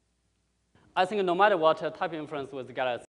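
A man speaks into a microphone over a loudspeaker in a large room.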